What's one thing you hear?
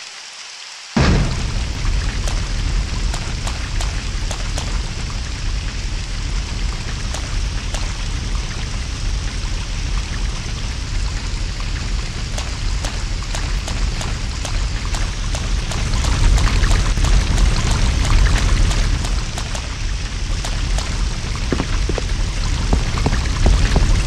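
Rain pours steadily outdoors.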